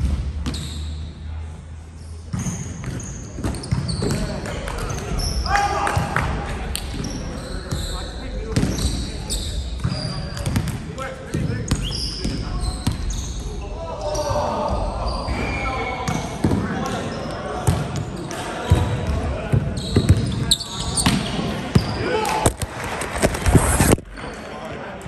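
A volleyball thuds off players' hands in an echoing gym hall.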